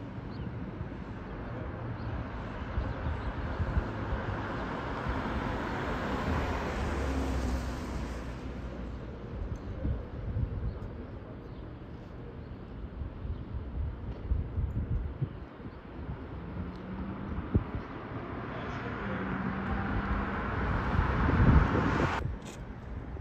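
A jet airliner roars low overhead, swelling and fading as it passes.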